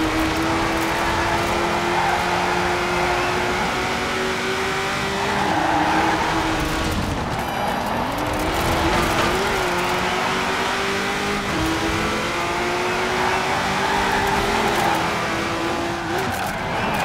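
Racing car engines roar at high revs, the pitch climbing steadily and dropping when slowing into bends.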